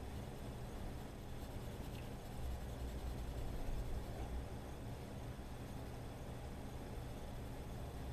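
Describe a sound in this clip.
A colored pencil scratches softly across paper.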